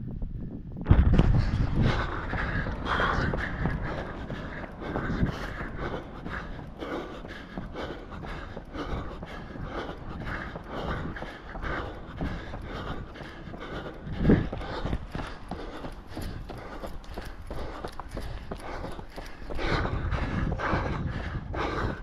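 Running footsteps slap on pavement.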